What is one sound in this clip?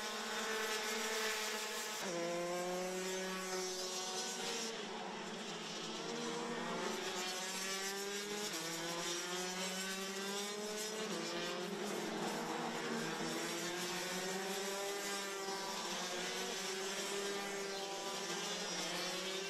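Racing kart engines whine loudly, rising and falling in pitch as they rev.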